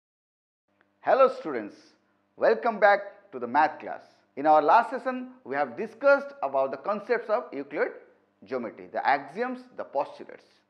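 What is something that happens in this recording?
A man speaks calmly and cheerfully, close by.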